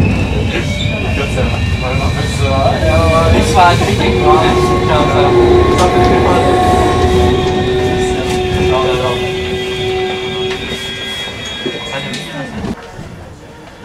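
A train rumbles slowly along a track.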